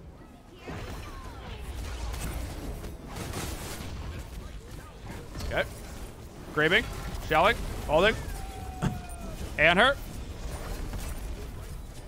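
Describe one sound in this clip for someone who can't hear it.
Video game battle sounds whoosh and rumble.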